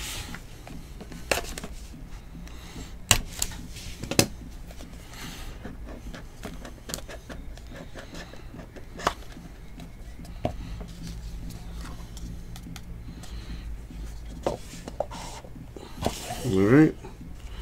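A small cardboard box knocks and taps against a table.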